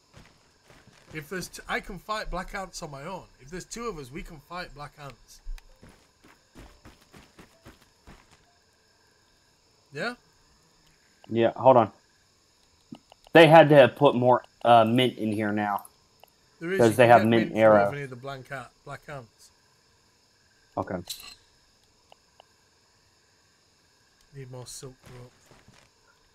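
A person talks with animation into a close microphone.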